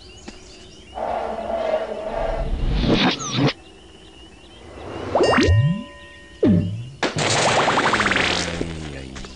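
A magic puff of smoke bursts with a whooshing sparkle.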